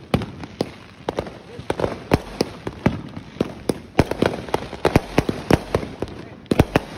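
Fireworks bang and crackle nearby in quick bursts outdoors.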